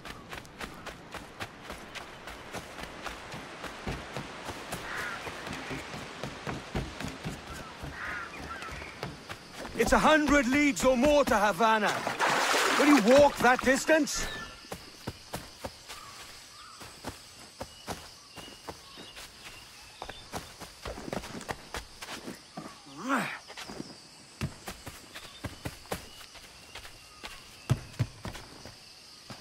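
Footsteps patter quickly over ground and wooden planks.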